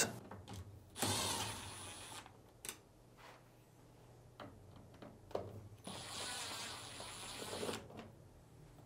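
A cordless drill whirs as it drives out screws.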